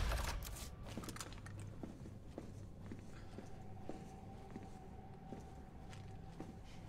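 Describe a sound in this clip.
Footsteps thud slowly on a hard floor.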